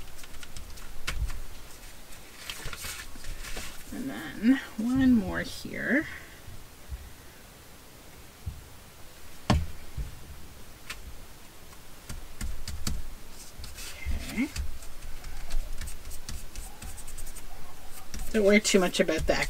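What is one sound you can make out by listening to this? Paper rustles and slides under hands on a wooden table.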